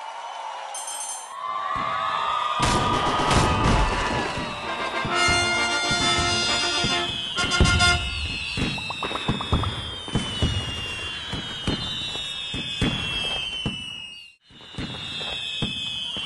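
Fireworks pop and crackle.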